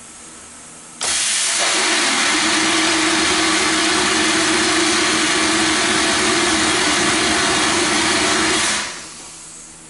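Compressed air rushes through a line with a loud, steady hiss.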